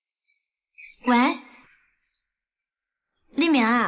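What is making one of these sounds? A young woman talks on a phone.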